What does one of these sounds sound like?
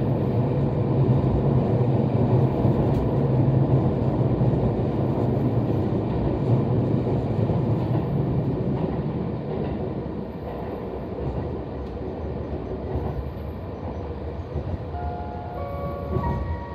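A train rumbles loudly through a tunnel, gradually easing off.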